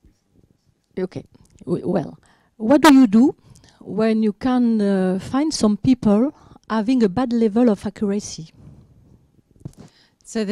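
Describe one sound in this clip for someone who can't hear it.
A woman speaks calmly into a microphone, heard through a loudspeaker.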